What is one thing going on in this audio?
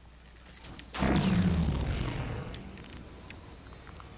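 A loud electric zap crackles and fades.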